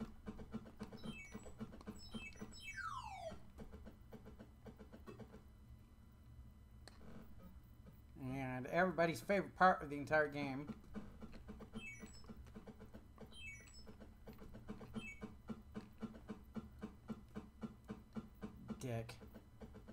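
Retro video game beeps and tones play in rapid bursts.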